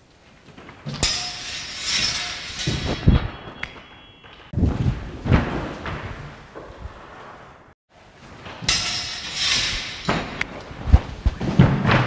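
Practice swords clack together.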